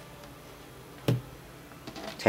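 A phone is set down with a light knock.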